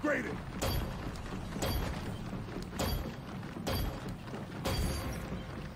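Heavy boots thud on hard ground as a soldier runs.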